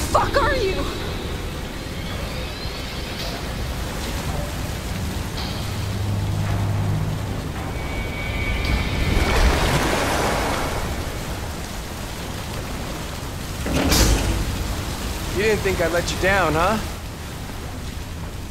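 Water pours and splashes steadily.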